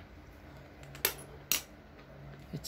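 Metal tools clink against each other.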